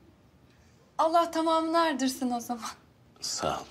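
A young woman speaks cheerfully nearby.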